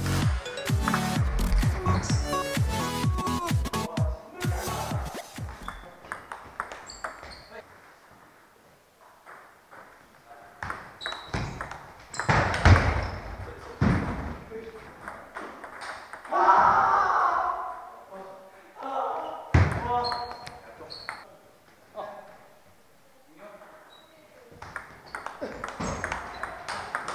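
A table tennis ball clicks back and forth between paddles and the table in a large echoing hall.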